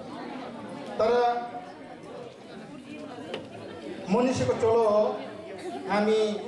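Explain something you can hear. A man speaks with animation in a room with some echo.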